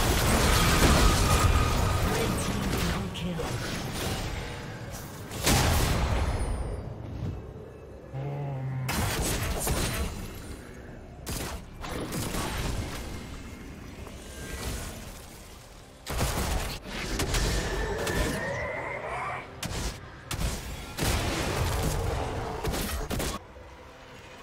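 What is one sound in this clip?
Magic spells whoosh and crackle in bursts during a fight.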